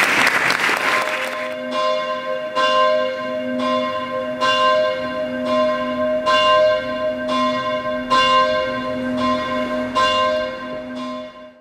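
Church bells ring out in a slow, steady peal.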